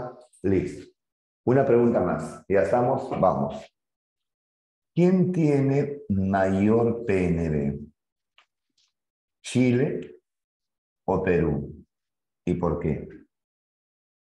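A man lectures with animation, close to a microphone.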